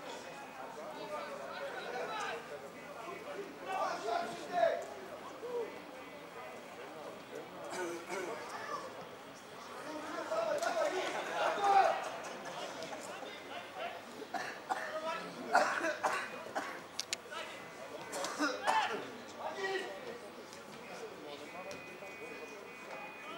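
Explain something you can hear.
Football players shout to one another across an open outdoor pitch.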